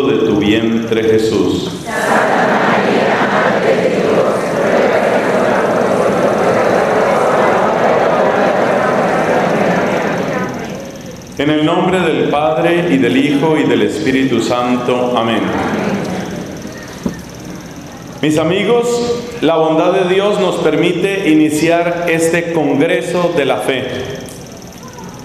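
A man speaks calmly into a microphone, his voice carried through loudspeakers.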